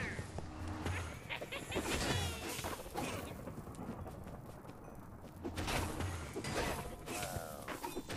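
A sword swishes and strikes in a fight.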